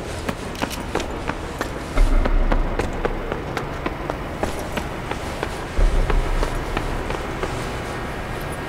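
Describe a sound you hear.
Footsteps crunch steadily on a hard floor.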